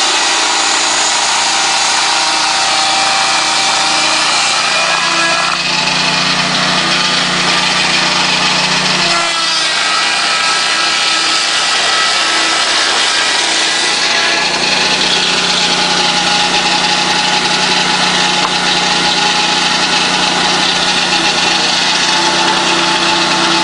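A saw blade cuts through a log with a rasping whine.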